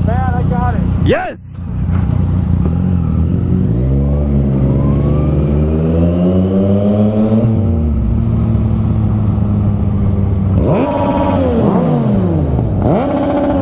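A motorcycle engine revs hard as the bike accelerates and shifts up through the gears.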